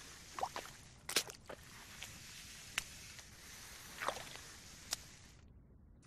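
A kayak hull scrapes over wet rock as it is dragged.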